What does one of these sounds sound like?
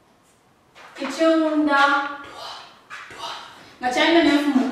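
A woman speaks clearly and loudly.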